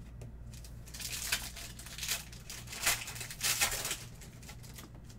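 Foil card wrappers crinkle and rustle as hands tear them open.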